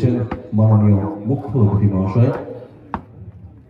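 A man speaks loudly over a loudspeaker outdoors.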